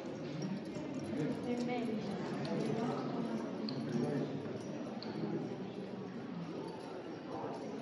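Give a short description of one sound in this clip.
Indistinct voices murmur in an echoing room.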